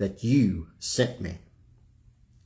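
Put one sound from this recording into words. An older man speaks with emphasis, close to a microphone.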